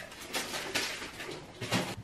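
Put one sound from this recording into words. Items rattle as someone rummages through a fridge.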